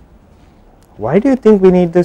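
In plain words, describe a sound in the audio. A man speaks calmly and clearly into a microphone.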